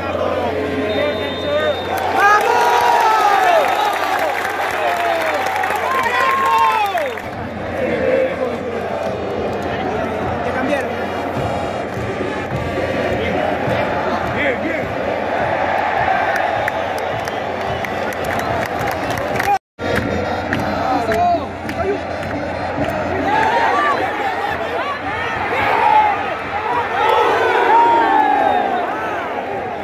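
A huge stadium crowd chants and sings loudly all around.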